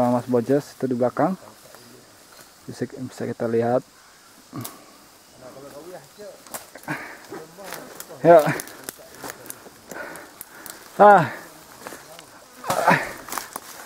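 Leaves rustle and twigs crackle as someone climbs through undergrowth.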